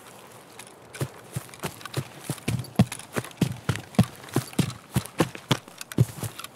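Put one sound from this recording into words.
Footsteps thud quickly and steadily on soft ground.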